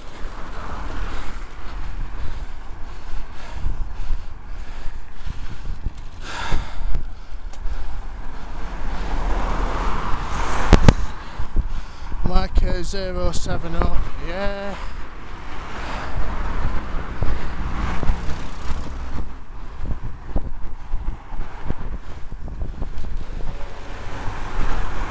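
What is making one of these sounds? A bicycle's wheels roll on tarmac.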